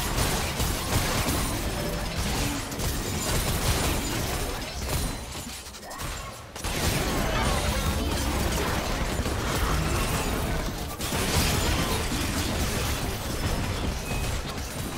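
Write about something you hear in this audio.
Video game spells burst and clash in a busy fight.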